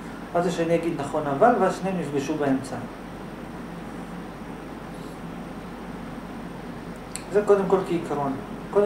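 A young man speaks calmly into a close microphone, pausing between phrases.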